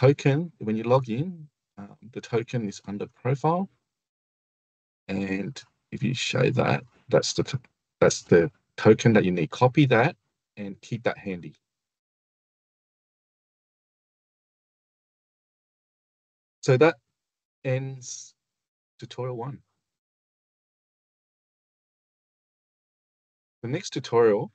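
A man speaks calmly through an online call, in pauses.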